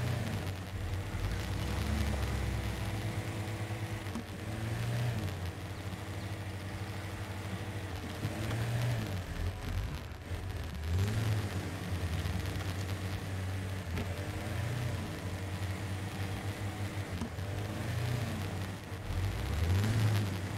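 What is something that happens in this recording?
Tyres crunch over rough dirt and rocks.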